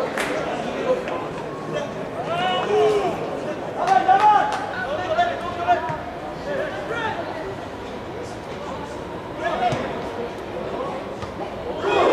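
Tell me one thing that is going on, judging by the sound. Players shout to each other across an open outdoor pitch.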